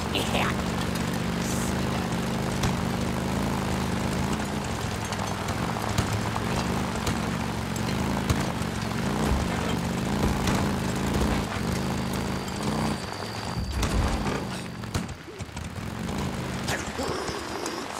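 A motorcycle engine revs and rumbles steadily.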